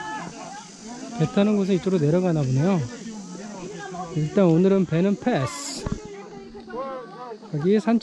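A crowd of men and women chatter outdoors.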